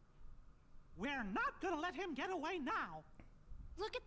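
A high-voiced cartoon character speaks eagerly.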